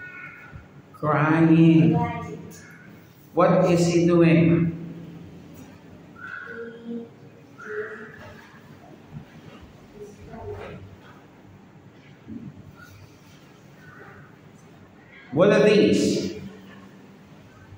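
A young boy speaks loudly and clearly nearby, answering in short phrases.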